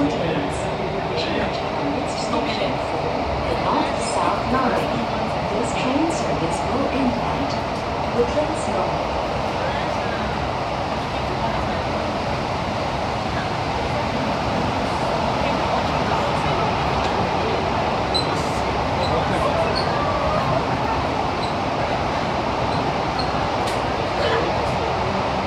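A train rumbles and hums steadily as it rolls along.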